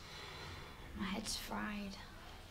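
A young woman speaks, sounding surprised.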